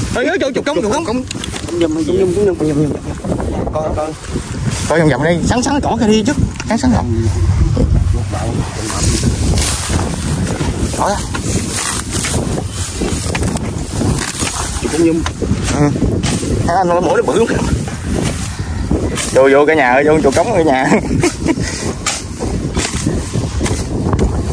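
A metal tool chops and scrapes into damp soil.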